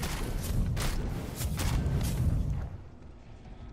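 A burst of flame roars.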